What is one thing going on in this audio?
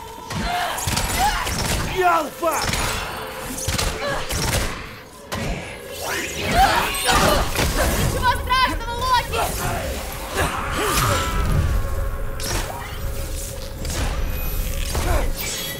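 Arrows whoosh as a bow is shot.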